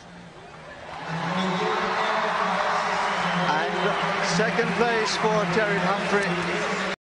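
A large crowd cheers and applauds in a big echoing arena.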